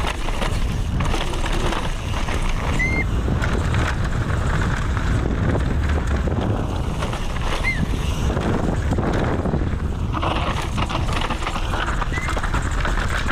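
Wind rushes loudly past a fast-moving rider.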